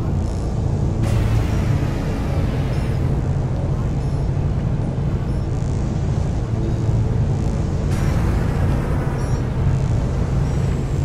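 A landing ship's thrusters roar and hiss nearby.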